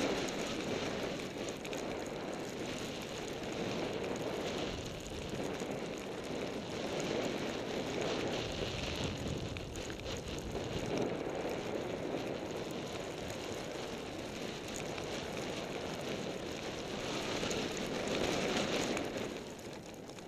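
Wind rushes against the microphone.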